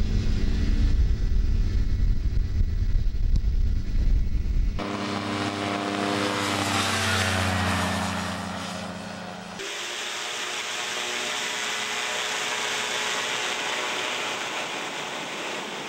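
A small aircraft engine drones loudly.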